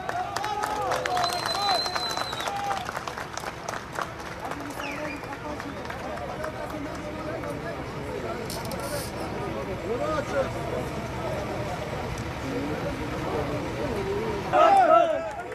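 A crowd of men cheers and shouts outdoors.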